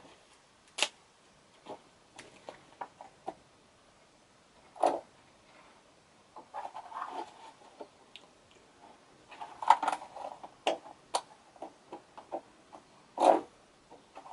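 Plastic keys of a small keyboard click and clack.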